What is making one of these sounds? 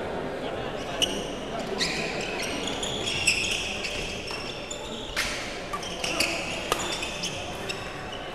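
Shuttlecocks are struck sharply by rackets in a large echoing hall.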